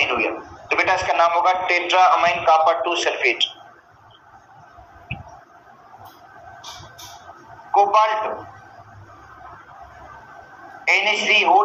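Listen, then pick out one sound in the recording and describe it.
A man lectures calmly through a headset microphone, in bursts with pauses.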